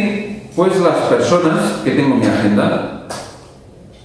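A man speaks calmly, lecturing.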